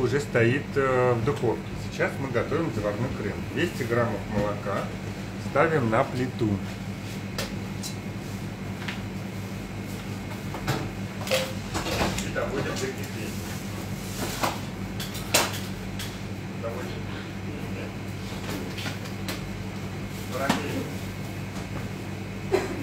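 A ventilation hood hums steadily.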